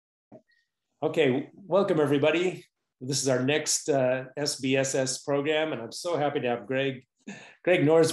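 A middle-aged man talks cheerfully over an online call.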